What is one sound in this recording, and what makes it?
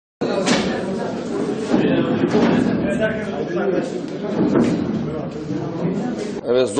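Several men talk over one another in a busy, crowded room.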